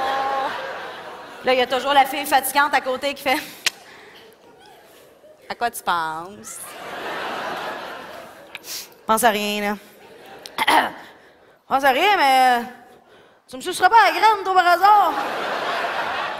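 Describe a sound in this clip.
An audience laughs and cheers in a large hall.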